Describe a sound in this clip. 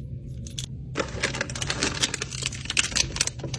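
A plastic packet crinkles.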